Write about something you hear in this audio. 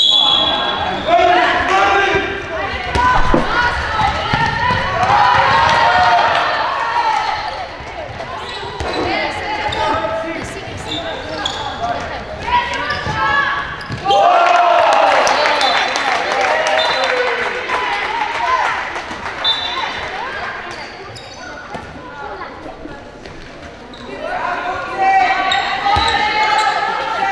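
A ball bounces on a wooden floor.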